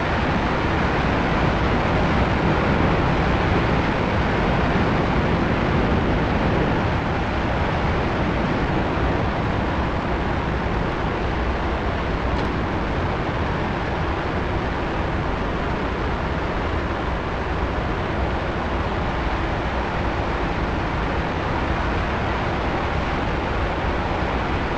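Wind rushes loudly past a cockpit canopy.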